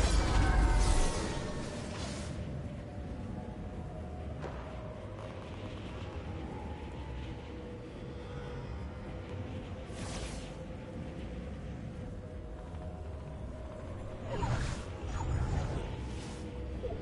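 Wind rushes steadily past a flying game character.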